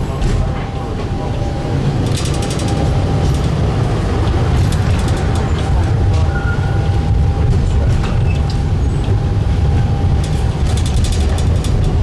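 Steel wheels squeal faintly on curved rails.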